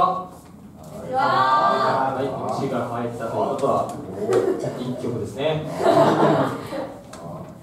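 Drums are played by a live band.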